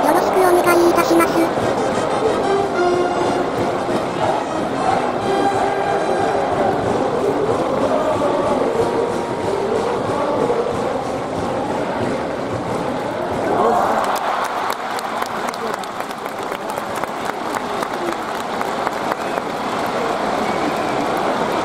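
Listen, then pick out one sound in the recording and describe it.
A large crowd cheers and chants loudly in a stadium.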